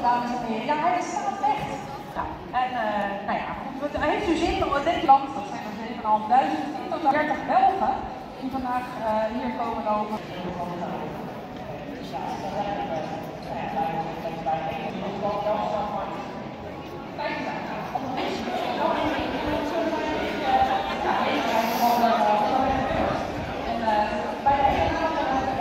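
A crowd of spectators chatters outdoors along a street.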